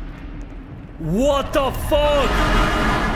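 A man exclaims loudly into a close microphone.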